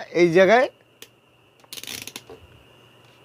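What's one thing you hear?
A multimeter's rotary switch clicks as it is turned.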